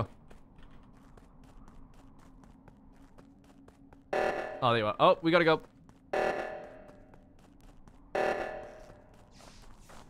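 Soft footsteps patter quickly and steadily.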